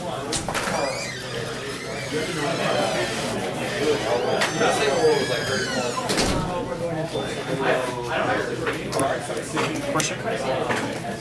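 Playing cards slap and slide onto a tabletop.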